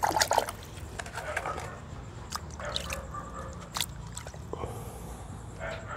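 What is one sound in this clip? Water drips and sprinkles onto soil.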